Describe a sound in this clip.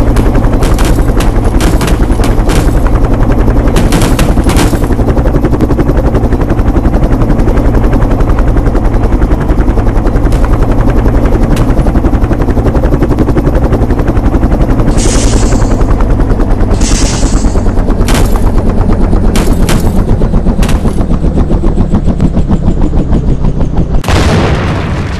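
A helicopter's rotor thuds steadily and loudly.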